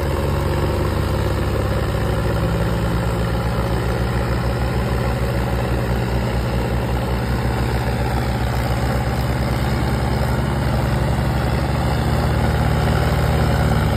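Two tractor diesel engines roar and strain loudly at full throttle.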